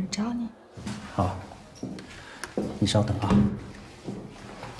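A man answers calmly.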